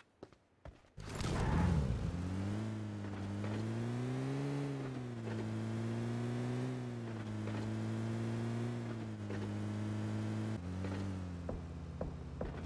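A car engine hums steadily as a vehicle drives along a road.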